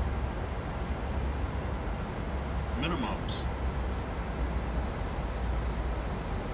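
Airliner jet engines rumble low and steady, heard from the cockpit on approach.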